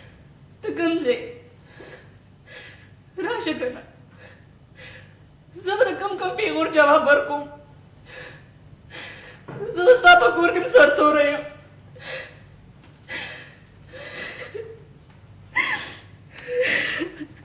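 A woman speaks tearfully, close by, her voice breaking with sobs.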